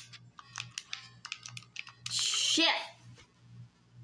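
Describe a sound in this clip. Retro game sound effects beep and chirp.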